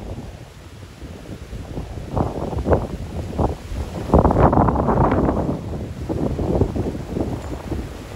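Palm fronds thrash and rustle in the wind.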